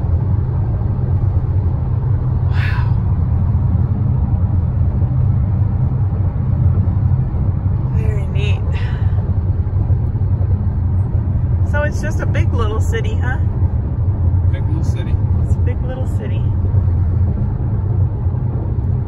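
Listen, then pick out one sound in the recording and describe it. A car's engine and tyres rumble steadily on a road, heard from inside the car.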